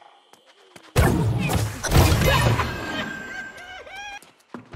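Blasts and impacts ring out in a fight.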